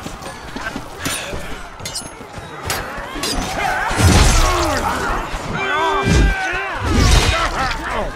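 Blows thud against a wooden shield.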